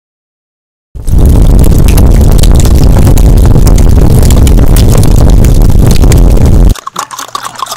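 Fire roars loudly.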